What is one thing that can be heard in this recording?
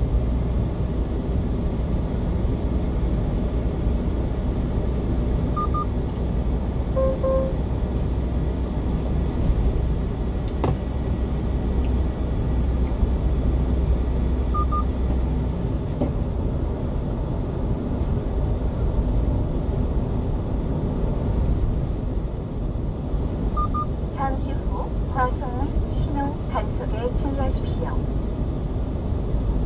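A car drives steadily along a road with a low rumble of tyres and engine.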